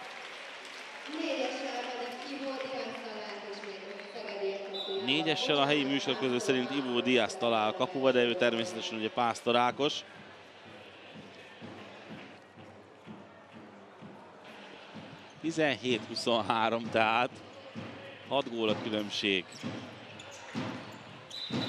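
A crowd of spectators cheers in a large echoing hall.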